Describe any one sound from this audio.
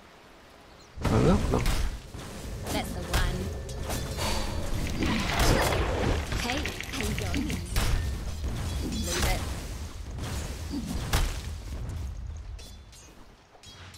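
Game spell effects and clashing blows ring out.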